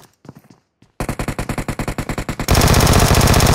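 A rifle fires in a rapid burst of shots.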